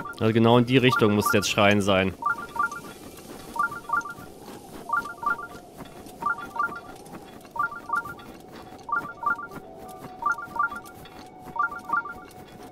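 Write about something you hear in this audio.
Footsteps crunch quickly on soft sand.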